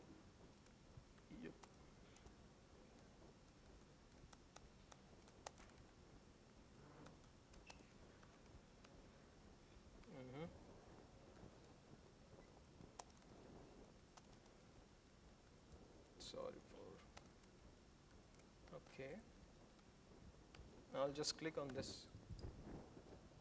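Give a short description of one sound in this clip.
A laptop keyboard clicks as keys are typed.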